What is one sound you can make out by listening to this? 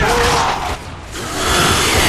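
Video-game rifle fire rattles.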